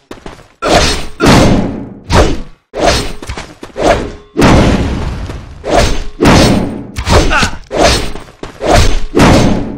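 Sword blows strike and whoosh in quick, repeated bursts.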